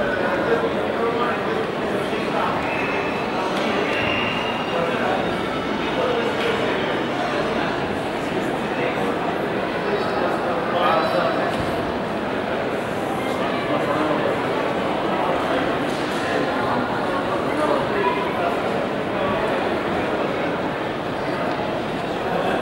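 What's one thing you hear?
A crowd of people chatters in a large open stone courtyard.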